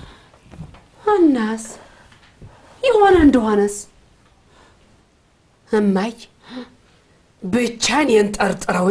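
A woman speaks angrily and loudly, close by.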